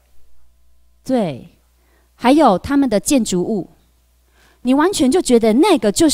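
A young woman speaks calmly through a microphone.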